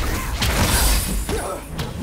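Glass shatters and scatters.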